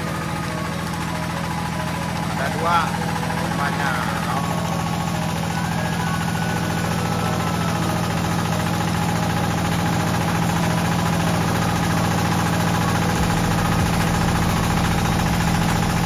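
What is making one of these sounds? A belt and pulley whir steadily as they spin.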